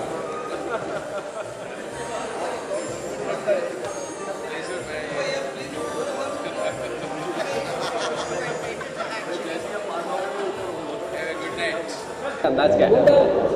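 A crowd chatters and calls out in a noisy hall.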